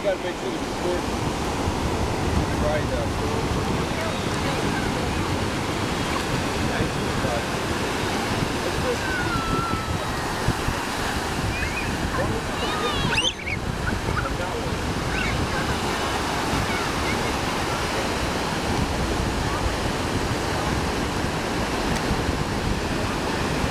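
Waves break and wash steadily onto the shore.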